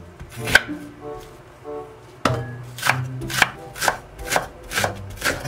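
A knife chops vegetables on a wooden board in quick, steady strokes.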